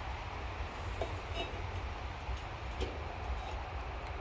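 A steel pipe knocks and scrapes against metal.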